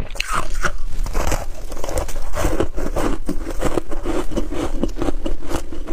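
A woman crunches loudly on ice, close to a microphone.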